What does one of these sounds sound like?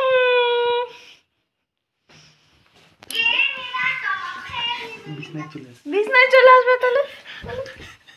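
A young woman laughs and talks playfully close by.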